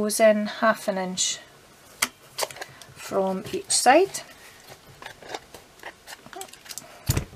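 A small card box rustles as it is turned in the hands.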